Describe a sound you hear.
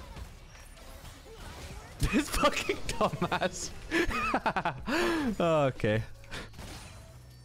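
Magic spells whoosh and crackle in short bursts.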